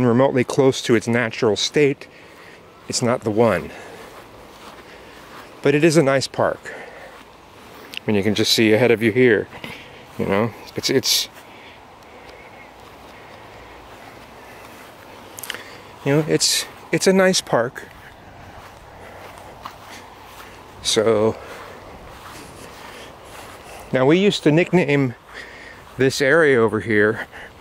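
A man talks calmly close to the microphone, in short phrases with pauses.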